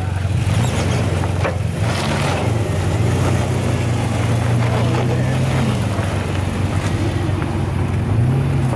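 Tyres crunch slowly over rock and dirt.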